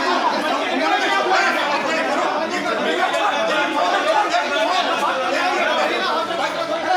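A crowd of men shout and argue loudly outdoors.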